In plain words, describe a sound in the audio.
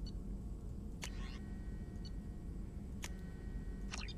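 Short menu clicks sound as options are selected.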